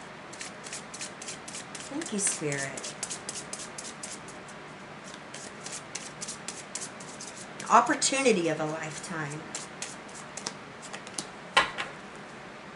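Playing cards riffle and slap softly as they are shuffled by hand.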